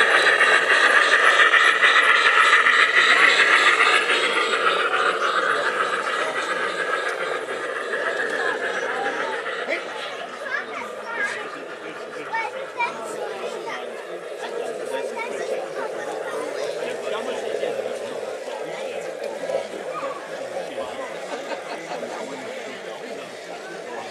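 A model train's wheels rumble and click along metal rails.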